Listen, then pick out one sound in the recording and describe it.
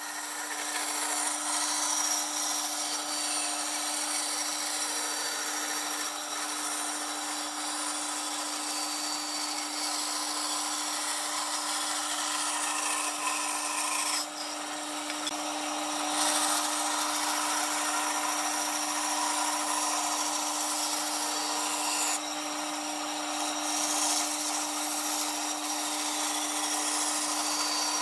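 A band saw hums and cuts through a wooden board.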